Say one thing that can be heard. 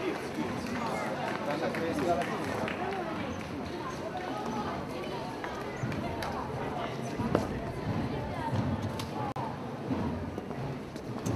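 Footsteps of a group of men shuffle on wet cobblestones.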